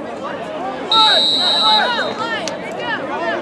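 A referee blows a whistle once.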